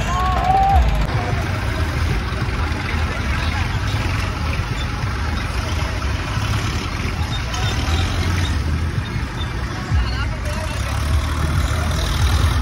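Water splashes and gushes around wading people.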